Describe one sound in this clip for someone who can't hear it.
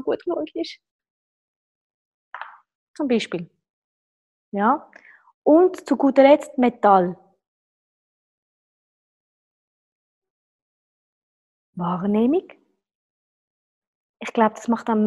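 A woman talks calmly and closely into a microphone, pausing now and then.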